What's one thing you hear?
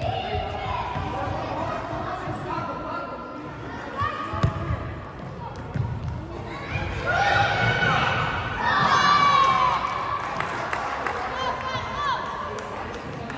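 Children shout to each other in a large echoing hall.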